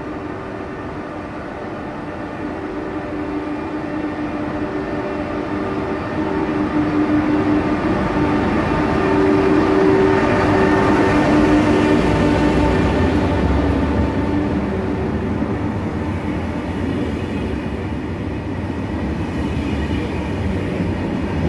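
A high-speed train's engine hums, growing louder as it passes close by.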